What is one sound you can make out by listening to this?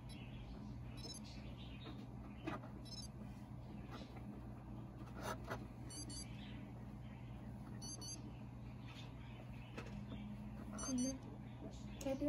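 A small electronic toy gives short, high electronic beeps.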